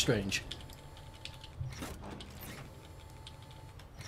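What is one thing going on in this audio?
A metal switch clicks.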